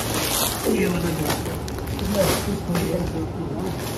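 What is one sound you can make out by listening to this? A bundle of plastic-wrapped packets thumps down onto a pile.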